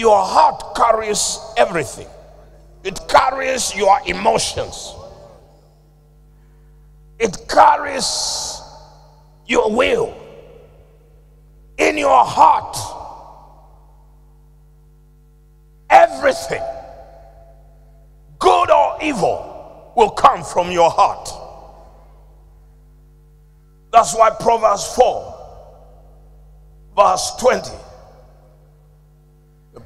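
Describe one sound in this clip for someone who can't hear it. A man preaches into a microphone with animation, in short bursts, echoing in a large hall.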